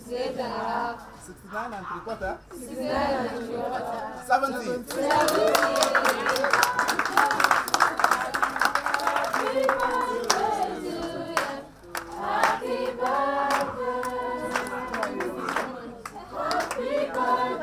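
A group of men and women sing together outdoors.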